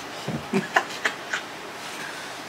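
A small boy speaks and laughs close by.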